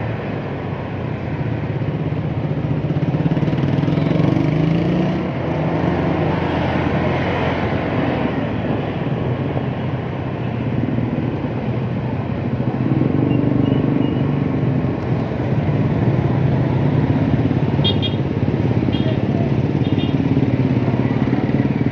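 Nearby motorcycles and tricycles rumble in traffic.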